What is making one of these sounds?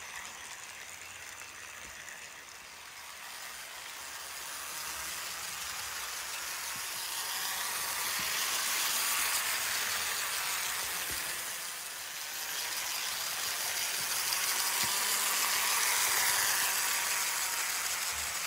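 A small model train whirs and clicks along its track, swelling as it passes close.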